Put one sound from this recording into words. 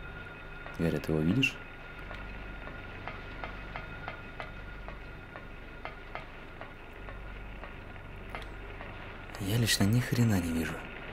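Footsteps clang on a metal grating at a steady pace.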